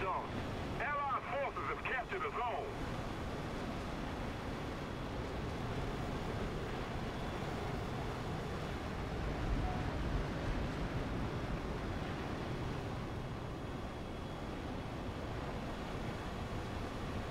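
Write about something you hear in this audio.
A jet fighter roars in flight with its afterburner lit.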